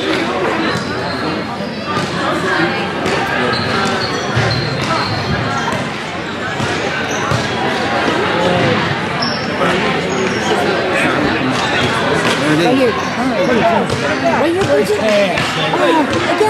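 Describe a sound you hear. Young girls shout and call out to each other across a large echoing hall.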